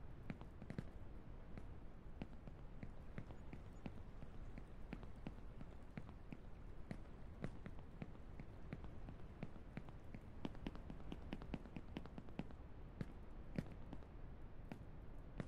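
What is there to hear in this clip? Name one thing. Quick footsteps tap on stone.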